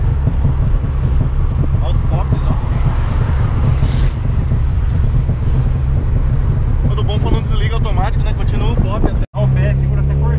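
A car engine drones loudly with road rumble.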